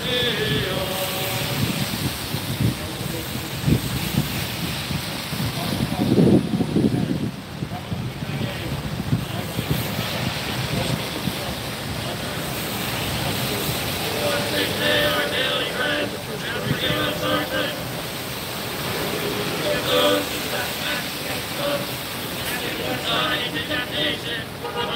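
Car tyres hiss on a wet road as traffic passes.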